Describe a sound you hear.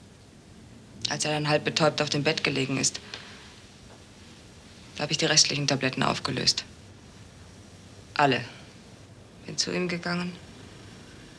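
A woman speaks calmly and quietly close by.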